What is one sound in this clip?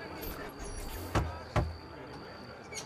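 A heavy wooden door thuds open.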